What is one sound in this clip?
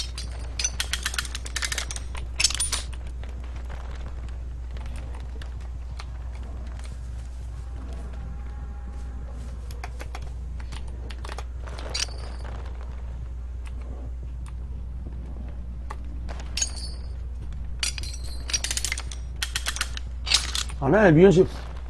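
A metal trap clanks and snaps as it is set.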